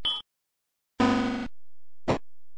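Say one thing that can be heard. A brief electronic chime sounds.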